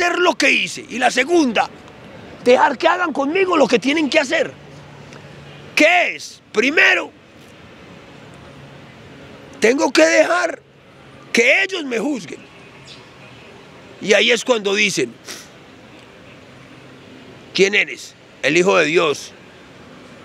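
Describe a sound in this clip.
A middle-aged man speaks with animation into a handheld microphone, close by.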